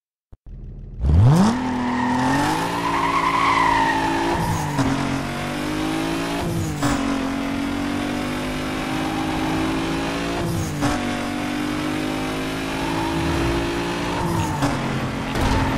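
A car engine revs hard and shifts through its gears.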